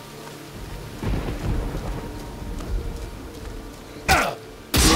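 Blows and impacts thud and crunch in quick bursts.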